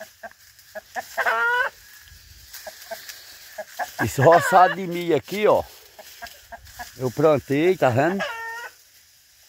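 A rooster crows nearby.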